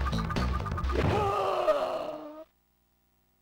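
A short, falling game-over jingle plays and then cuts to silence.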